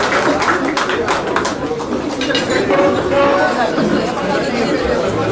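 A crowd of men and women chatters loudly in a busy room.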